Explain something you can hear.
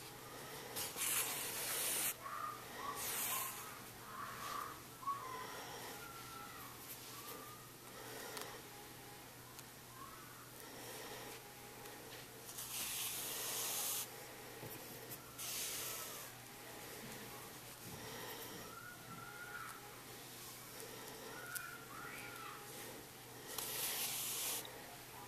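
Yarn rasps as it is pulled through knitted fabric in short bursts.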